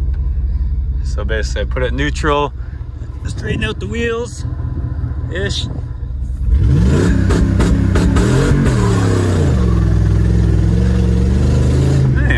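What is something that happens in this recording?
An engine rumbles steadily and then revs hard.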